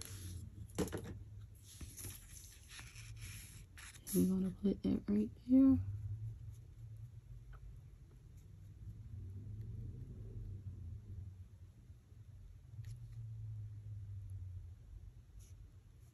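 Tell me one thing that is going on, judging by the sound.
A paintbrush brushes softly across a wooden surface.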